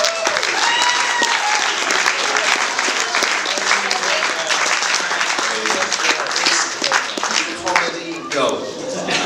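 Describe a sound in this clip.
A crowd claps and cheers in a room.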